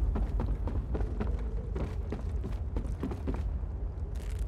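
Quick footsteps thud on wooden boards.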